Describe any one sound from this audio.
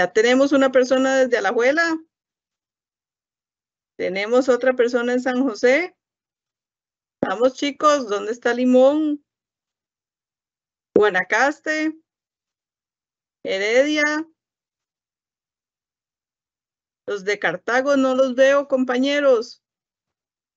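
A woman speaks calmly in bursts with pauses, heard through an online call.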